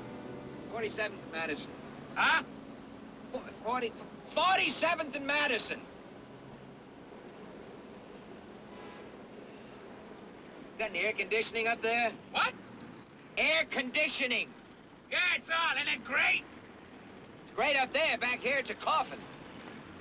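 A middle-aged man speaks with emotion, close by.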